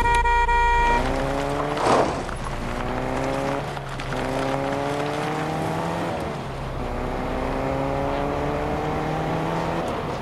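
A car engine revs up repeatedly, rising in pitch as it shifts through gears.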